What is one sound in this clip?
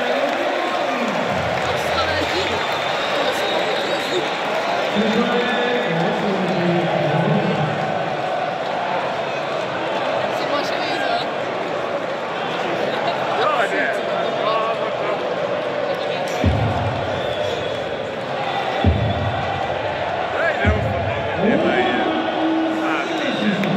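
A huge crowd sings and chants loudly in a large echoing hall.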